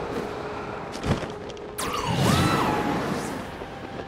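A glider snaps open with a flapping sound.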